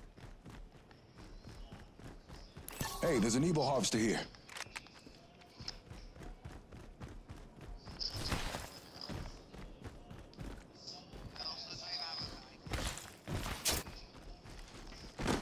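Quick footsteps patter steadily on hard ground.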